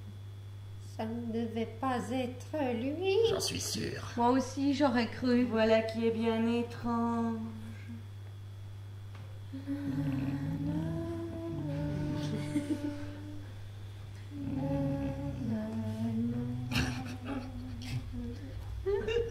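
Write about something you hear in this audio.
A group of women sing together in a large hall.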